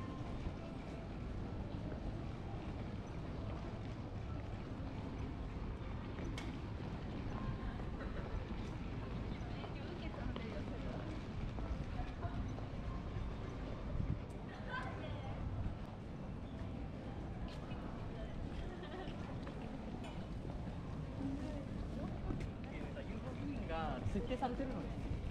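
Low street rumble and wind fill the air outdoors.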